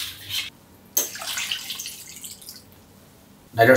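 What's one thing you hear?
Liquid pours and splashes onto food.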